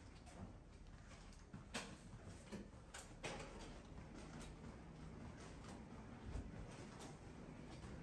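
Footsteps walk softly.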